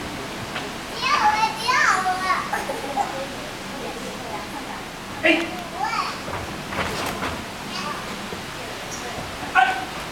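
A small child babbles and squeals nearby.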